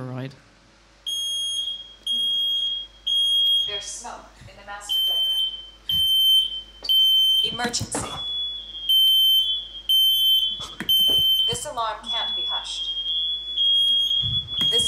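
An alarm beeps repeatedly through a loudspeaker.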